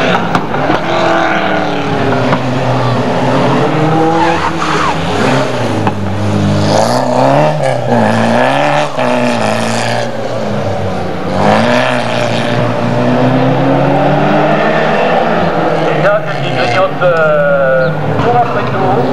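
A rally car engine revs hard and roars, rising and falling in pitch as it shifts gears.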